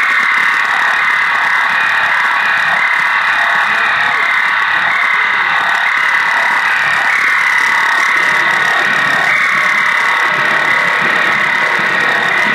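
A drummer plays a drum kit loudly.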